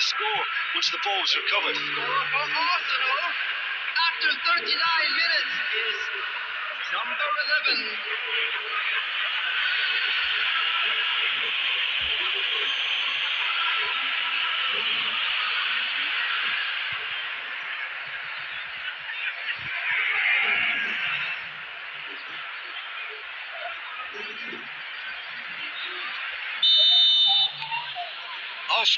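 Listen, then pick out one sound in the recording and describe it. A large stadium crowd cheers and claps steadily.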